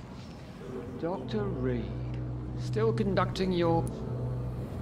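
A middle-aged man speaks calmly and slowly.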